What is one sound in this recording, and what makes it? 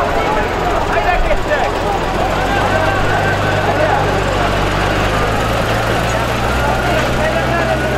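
A dense crowd of men shouts and calls out all around outdoors.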